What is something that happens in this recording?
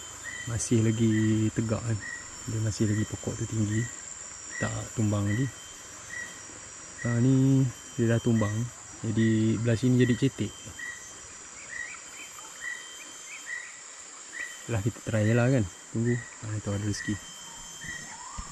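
A man speaks calmly close by, in short phrases.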